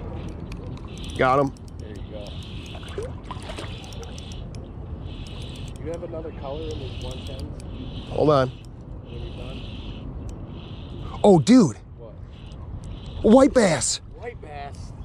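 A fishing reel whirs in short bursts as line is wound in.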